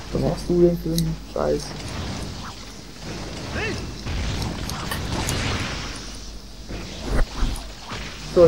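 A large sword slashes and strikes a creature with heavy blows.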